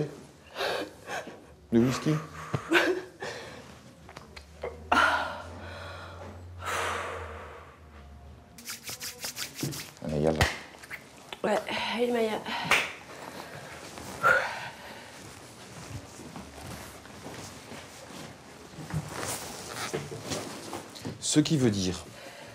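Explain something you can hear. A woman talks calmly.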